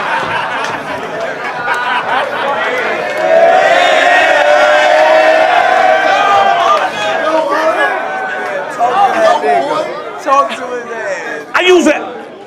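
Young men laugh nearby.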